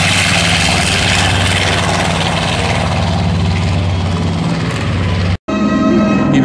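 Propeller engines roar loudly as a plane climbs away.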